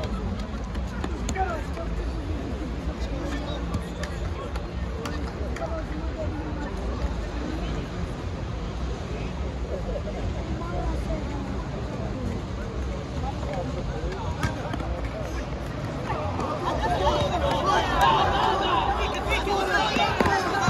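A crowd of men shout and call out.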